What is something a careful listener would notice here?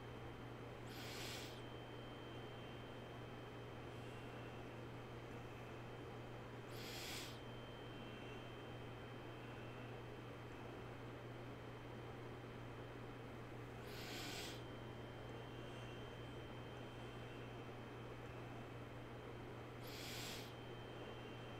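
A man breathes in deeply and slowly near a microphone.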